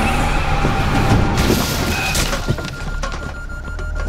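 Boxes crash and scatter as a car hits them.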